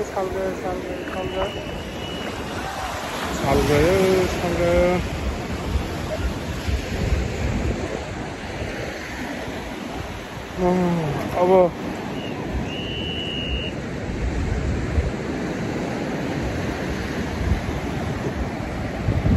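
Wind blusters across the open beach.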